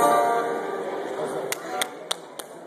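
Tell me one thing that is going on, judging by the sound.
An electric guitar chord rings out and slowly fades in a large hall.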